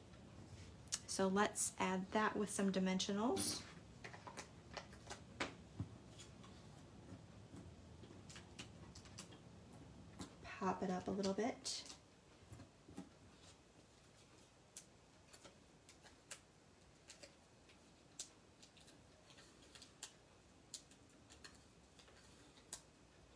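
Paper rustles and crinkles as it is handled up close.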